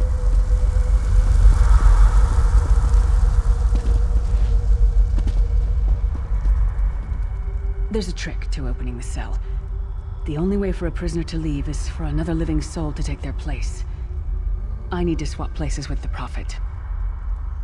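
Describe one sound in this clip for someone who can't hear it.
A low rumbling hum drones steadily.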